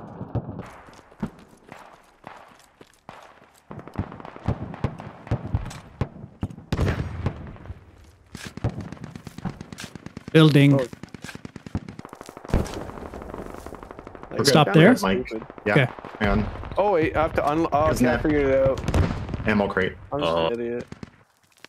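Footsteps crunch on dry, stony ground.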